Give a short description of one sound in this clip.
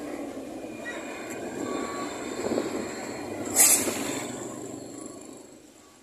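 A bus engine rumbles as the bus drives past close by.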